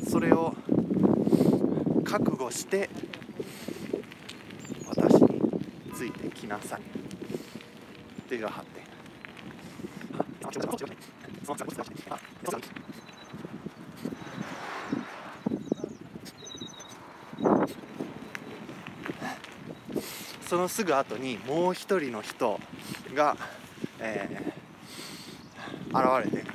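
A young man talks with animation close to the microphone, outdoors.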